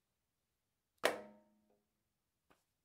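A hand slaps a rubber drum pad with a sharp thud.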